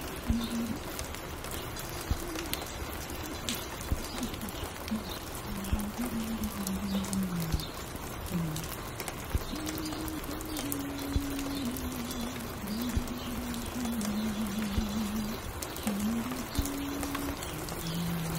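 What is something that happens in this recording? A record player plays a mellow, slow tune.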